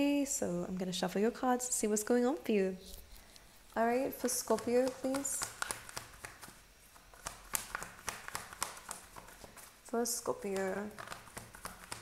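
A young woman talks calmly and close up.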